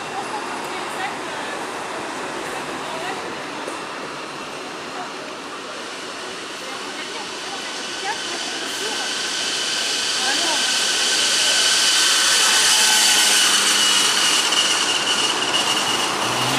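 Bicycle tyres hiss steadily on asphalt.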